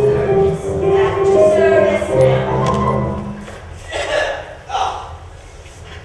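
A young man speaks loudly with animation in an echoing hall.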